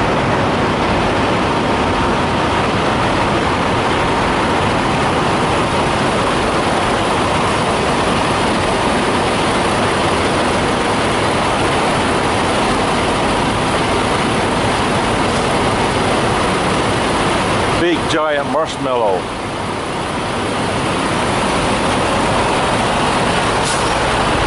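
Truck engines idle with a steady, loud rumble outdoors.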